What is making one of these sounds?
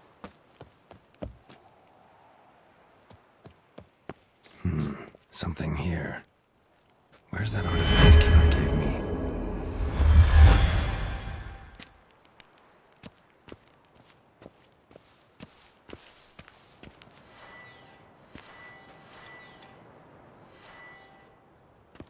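Footsteps tread on wood and stone at a steady walking pace.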